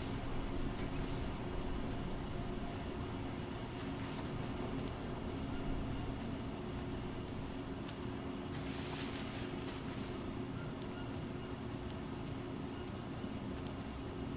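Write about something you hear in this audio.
Footsteps crunch over dry leaves and undergrowth.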